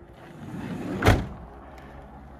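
A van door slides shut with a thud.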